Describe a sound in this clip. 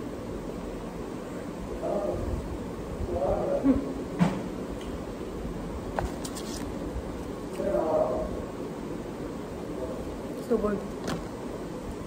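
A young woman chews food noisily close by.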